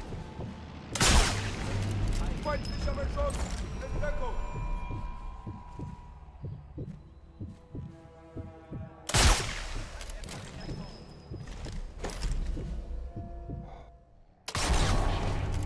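A suppressed rifle fires a sharp shot.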